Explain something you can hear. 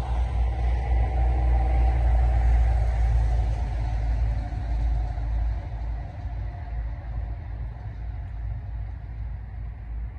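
A vehicle engine rumbles steadily while riding, growing quieter toward the end.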